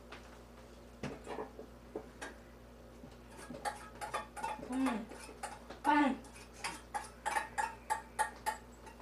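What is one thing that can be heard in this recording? A knife taps and scrapes on a plate.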